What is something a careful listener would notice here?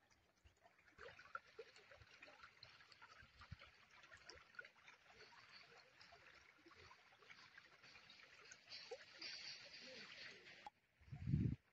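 Shallow water trickles and gurgles over stones.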